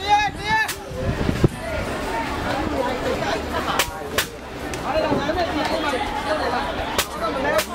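Many voices chatter outdoors.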